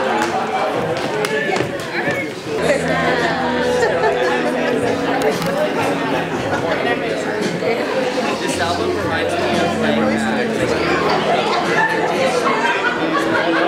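A crowd of men and women chatter and laugh in an echoing hall.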